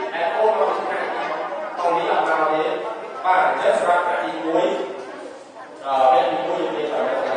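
A man speaks steadily through a loudspeaker in an echoing hall.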